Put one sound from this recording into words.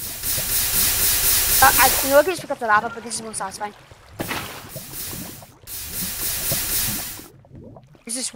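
Water pours and splashes onto hissing lava.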